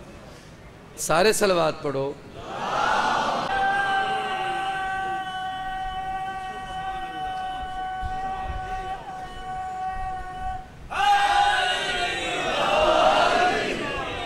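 A man chants loudly into a microphone, heard through loudspeakers in a large echoing hall.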